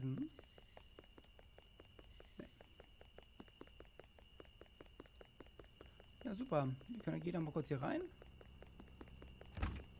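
Light footsteps patter quickly over soft ground.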